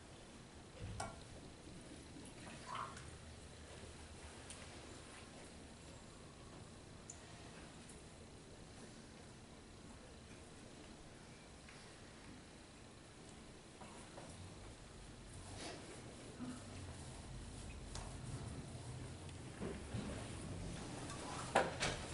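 Metal vessels clink softly against each other and a table.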